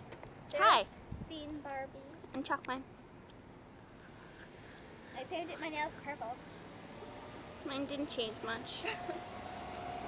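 A young woman speaks and laughs playfully close by.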